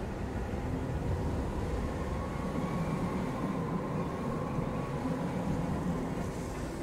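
Strong wind roars steadily in a storm.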